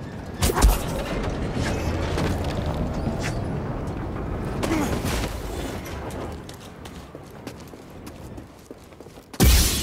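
Footsteps thud on wooden planks and rock.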